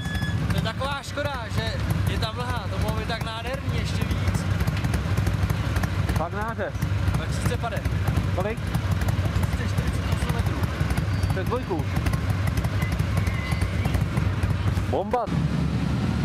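Motorcycle engines idle with a low, steady rumble.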